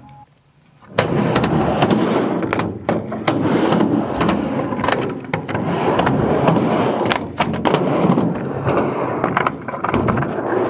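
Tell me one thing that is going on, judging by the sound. A skateboard clatters against a wooden ramp.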